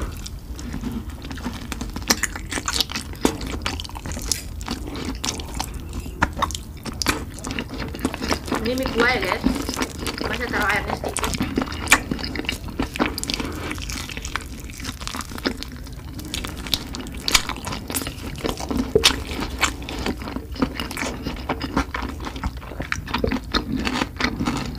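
A woman chews and slurps noodles close to a microphone.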